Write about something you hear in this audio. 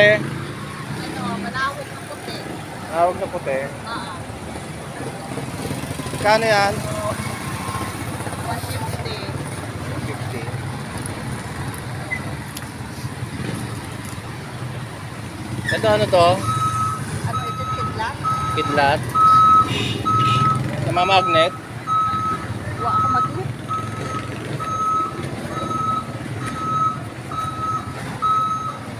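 A low, steady traffic rumble carries along a busy street outdoors.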